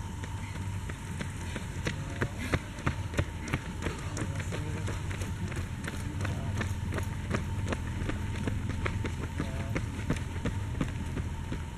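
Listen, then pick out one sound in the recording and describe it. Running footsteps slap on a paved road, coming closer and passing by.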